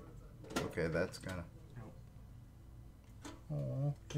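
A metal tin rattles and clanks as it is opened.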